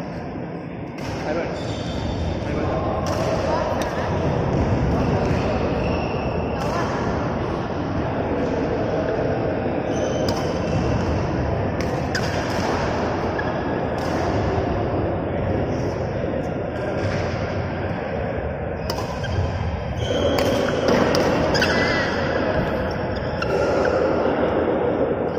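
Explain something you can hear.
A badminton racket strikes a shuttlecock with sharp pops that echo in a large hall.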